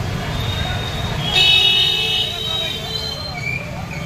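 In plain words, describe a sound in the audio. A motorcycle engine putters past close by.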